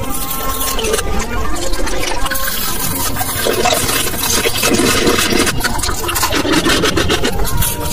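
A mouth bites and chews crunchy candy up close with wet, crackling sounds.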